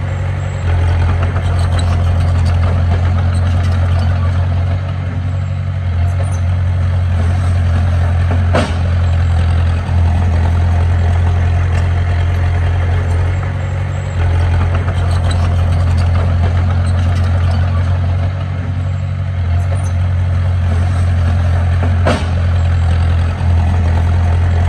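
A bulldozer's tracks clank and squeak over the dirt.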